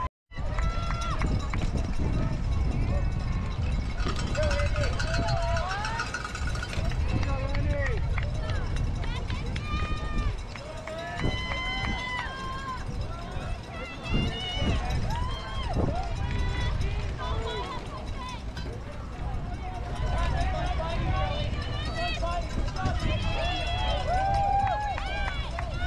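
A crowd of spectators cheers and shouts encouragement.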